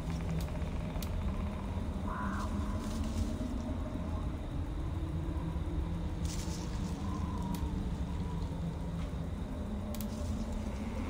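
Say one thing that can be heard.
Soft menu clicks sound as items are selected.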